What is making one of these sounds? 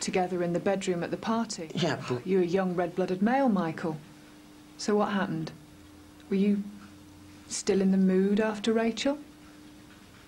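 A woman speaks calmly and seriously, close by.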